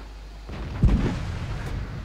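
A heavy cannon fires with a deep boom.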